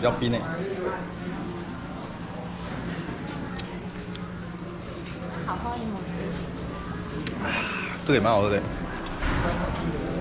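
A young man sips and gulps a drink.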